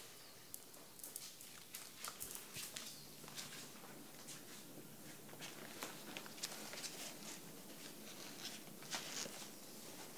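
Footsteps walk softly across a floor.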